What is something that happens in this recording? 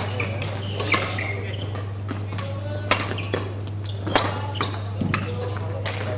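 Badminton rackets strike a shuttlecock in a large echoing hall.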